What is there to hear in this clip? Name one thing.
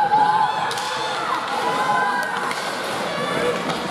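Hockey sticks clack against the ice and the puck.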